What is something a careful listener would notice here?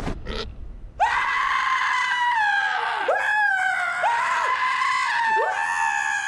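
A young man screams loudly in panic.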